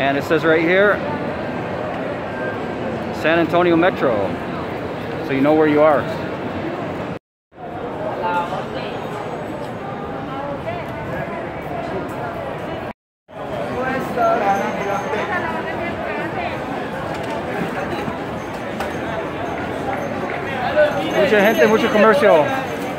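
A crowd of people chatters outdoors on a busy street.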